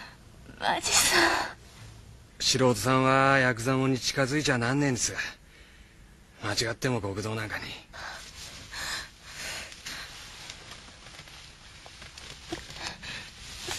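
A young woman sobs and cries loudly close by.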